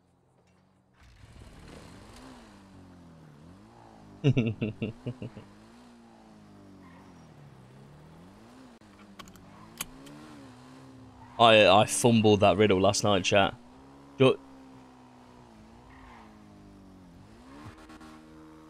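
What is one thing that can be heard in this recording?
A motorcycle engine revs up and down as the bike rides along.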